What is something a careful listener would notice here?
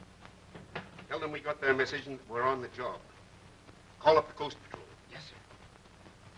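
A man speaks in short, clipped phrases.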